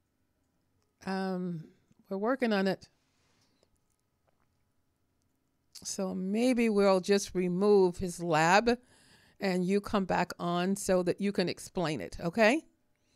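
A woman speaks calmly and closely into a microphone.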